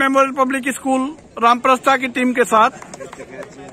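A young man speaks loudly and briskly close by.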